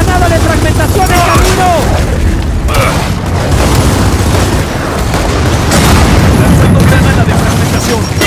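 A grenade explodes with a heavy boom.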